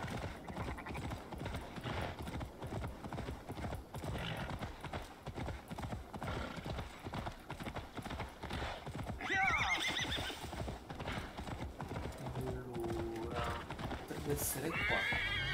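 Horse hooves gallop steadily on the ground.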